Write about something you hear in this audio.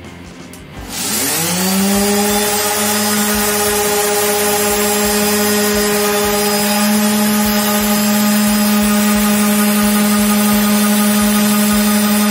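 An electric sander whirs up to speed and runs with a steady high hum.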